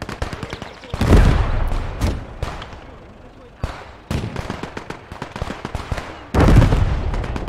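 Heavy explosions boom.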